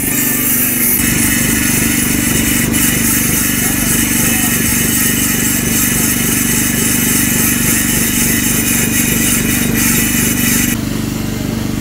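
An angle grinder whines steadily as it grinds stone.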